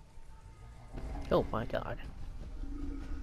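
A large creature growls loudly.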